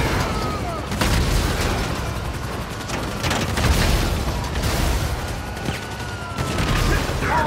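Explosions boom loudly a few times.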